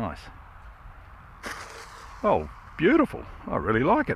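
A model plane bumps and skids onto grass.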